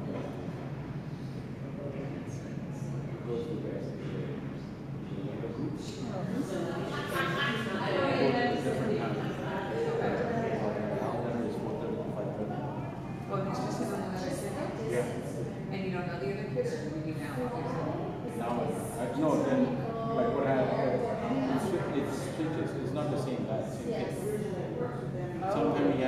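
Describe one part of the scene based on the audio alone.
Skates scrape and glide across the ice in a large echoing rink.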